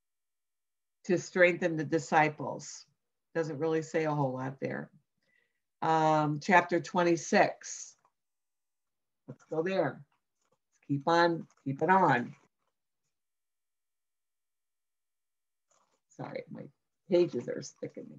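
An older woman talks calmly and close to the microphone, with pauses.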